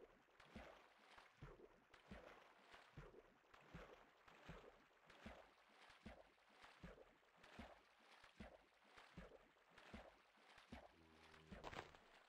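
Footsteps splash through shallow water at a steady pace.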